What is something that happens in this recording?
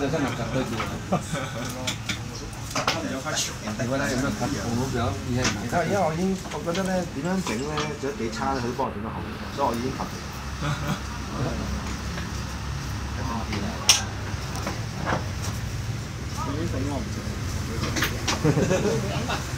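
Several adults chat and talk over each other nearby.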